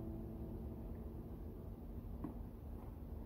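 An acoustic guitar chord rings and slowly fades.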